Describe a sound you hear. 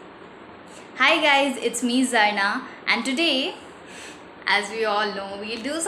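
A young woman speaks cheerfully and close to the microphone.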